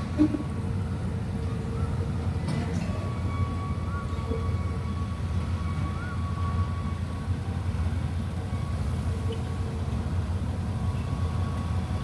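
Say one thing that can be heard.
A diesel locomotive engine rumbles steadily at low pitch nearby.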